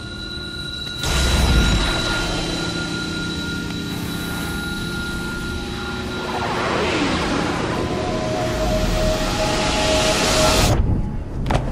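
A glowing device surges with a loud crackling, roaring burst of energy.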